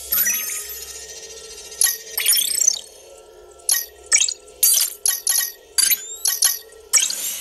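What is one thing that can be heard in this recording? Fingertips tap on a glass touchscreen.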